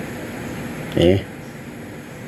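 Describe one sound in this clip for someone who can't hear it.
Billiard balls click together on a table.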